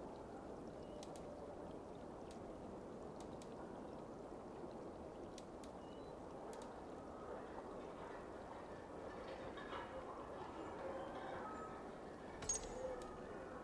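Soft, short menu clicks tick now and then as selections change.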